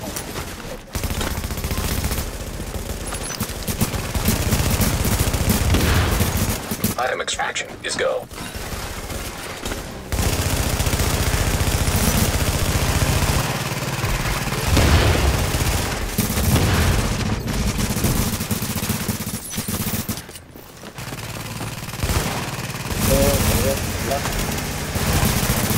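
Rapid gunfire rattles loudly and repeatedly.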